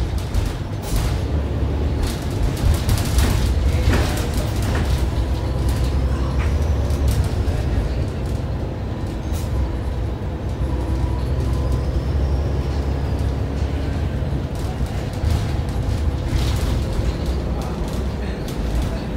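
A bus body rattles and clatters over the road.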